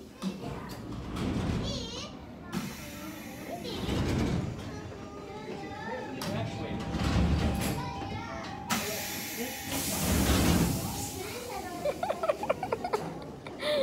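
A little boy chatters in a high voice.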